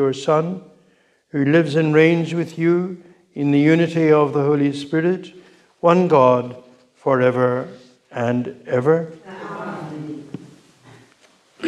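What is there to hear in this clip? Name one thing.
An elderly man chants in song through a microphone in an echoing hall.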